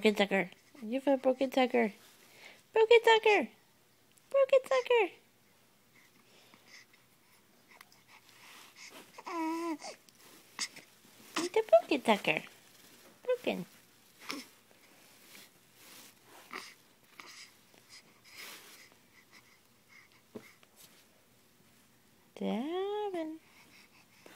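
A baby coos and babbles softly up close.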